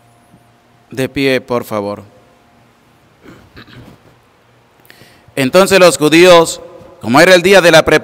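A man sings a chant through a microphone in an echoing room.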